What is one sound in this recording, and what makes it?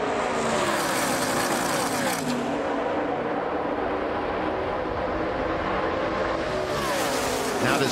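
Race trucks whoosh past up close, their engine pitch dropping as they go by.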